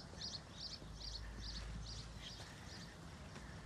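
A man's footsteps walk along a stone path.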